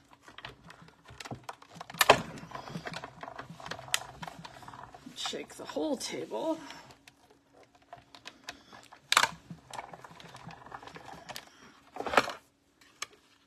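A hand-cranked machine clicks and rattles as its handle turns.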